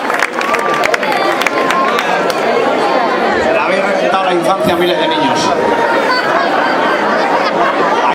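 A man sings into a microphone over a loudspeaker in a large echoing hall.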